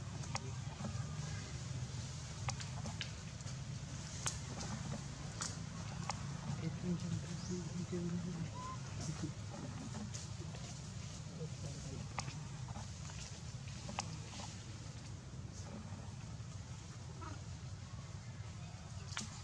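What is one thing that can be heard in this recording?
A baby monkey patters over dry leaves on the ground.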